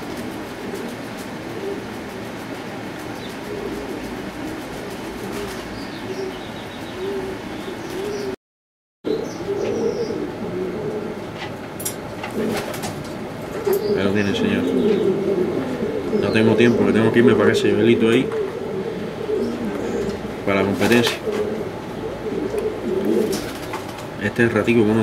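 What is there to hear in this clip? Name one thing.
Doves coo softly and steadily nearby.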